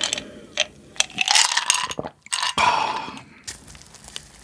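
A young man gasps and groans loudly after drinking.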